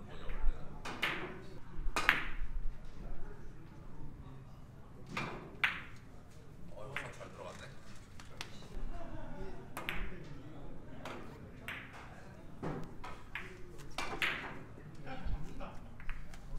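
A cue tip taps a ball.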